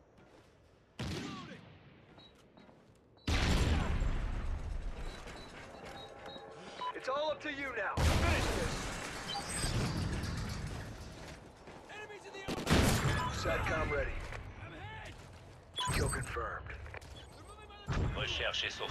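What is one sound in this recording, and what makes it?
Loud gunshots ring out with echoing tails.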